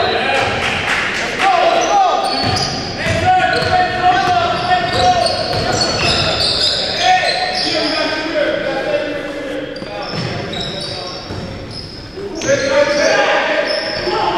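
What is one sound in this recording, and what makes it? Young men shout and call out to each other across the court.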